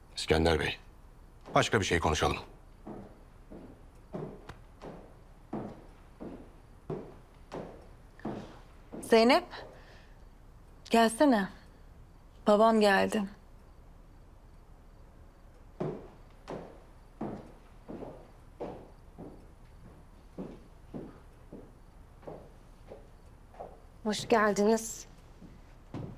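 A man speaks forcefully up close.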